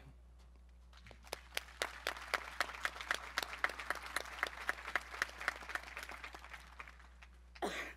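A large outdoor crowd claps and applauds.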